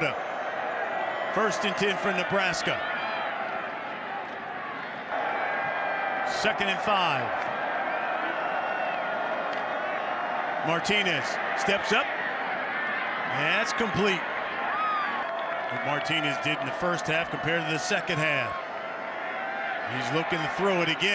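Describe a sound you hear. A large crowd roars in an open stadium.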